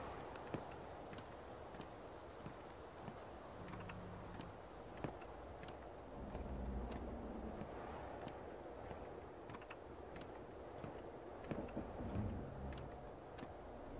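Footsteps thud and creak on old wooden planks.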